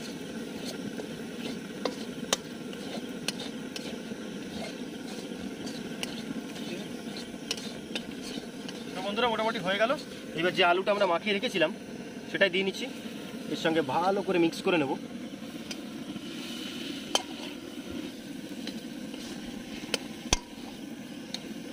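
A metal spatula scrapes and taps against a metal pan.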